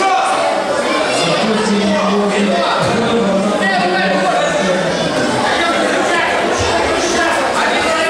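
Men and women in the crowd shout and cheer.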